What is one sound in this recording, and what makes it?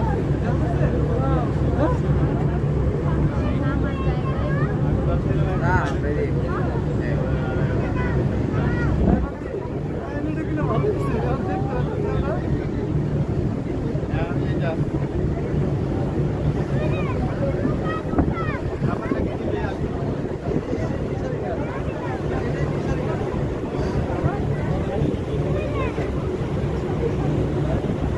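A ship's engine rumbles steadily.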